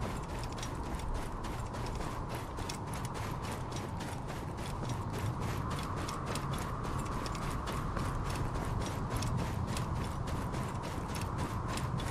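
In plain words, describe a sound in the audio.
Quick footsteps run over soft sand.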